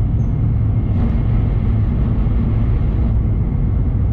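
A passing train rushes by in a short burst of wind noise.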